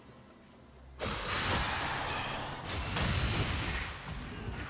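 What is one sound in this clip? Magic spells burst and crackle in a video game battle.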